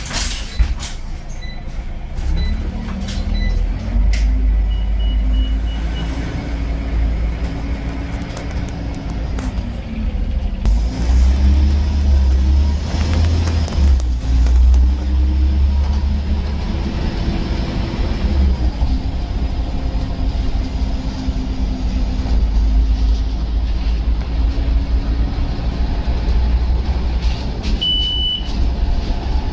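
A bus engine hums and whines as the bus drives along.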